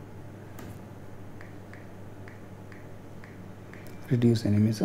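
Soft clicks sound as a fingertip taps a phone's keyboard.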